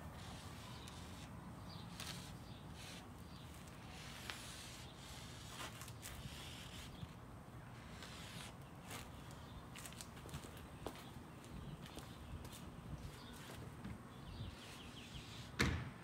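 Chalk scrapes on concrete.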